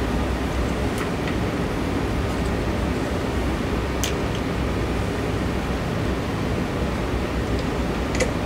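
A tool clicks and taps against wood overhead.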